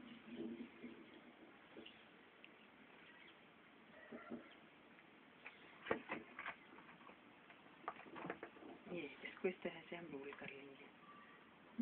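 A large leaf rustles softly as hands fold it.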